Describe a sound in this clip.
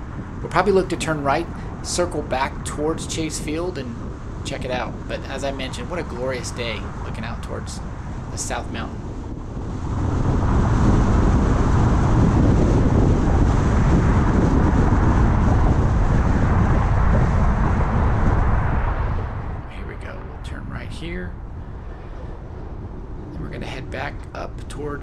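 Tyres hum steadily on a road as a car drives along, growing louder for a while and then easing off.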